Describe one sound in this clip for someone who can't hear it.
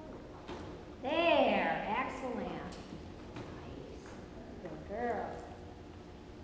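A woman calls out in a high, excited voice in a large echoing hall.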